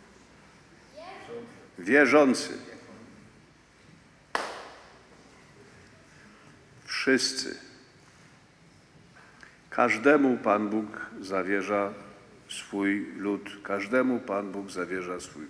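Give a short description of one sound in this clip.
An elderly man speaks slowly and solemnly through a microphone in a large echoing hall.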